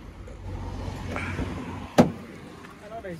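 A car door latch clicks open.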